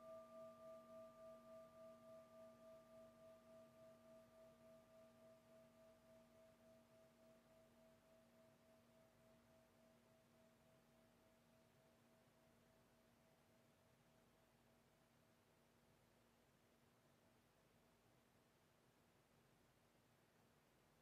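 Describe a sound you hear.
A singing bowl hums with a long ringing tone that slowly fades away.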